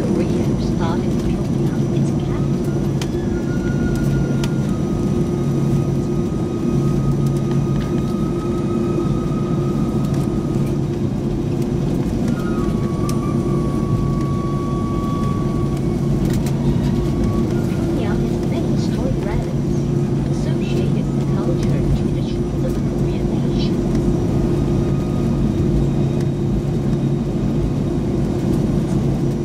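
Jet engines hum loudly and steadily from inside an aircraft cabin.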